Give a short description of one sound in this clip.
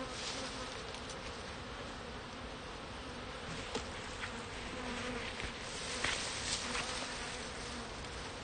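Wooden hive frames knock and scrape.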